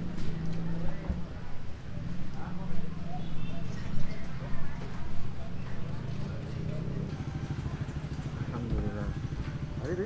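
A crowd of people chatters in a busy, noisy space.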